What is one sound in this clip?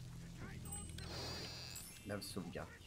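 A bright magical chime shimmers.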